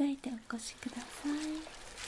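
Gloved fingers rustle softly against a cloth.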